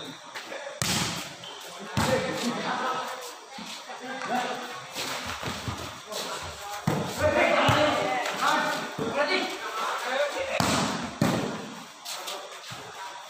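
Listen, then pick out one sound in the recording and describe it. Young men shout and call out across the court outdoors.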